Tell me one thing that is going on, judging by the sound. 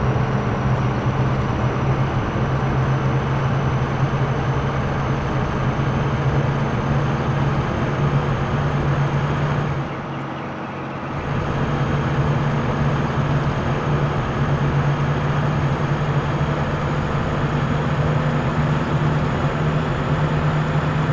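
A bus engine drones steadily, easing off briefly midway before picking up again.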